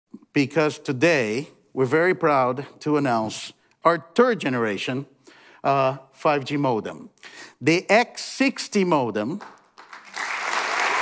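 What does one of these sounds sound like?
A man speaks calmly and clearly through a microphone in a large hall.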